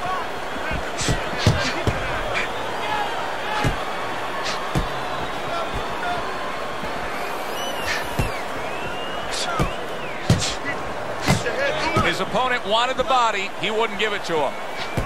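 Punches thud against a boxer's body and gloves.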